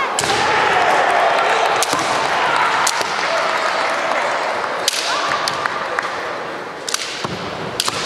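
Fighters shout loud, drawn-out battle cries in a large echoing hall.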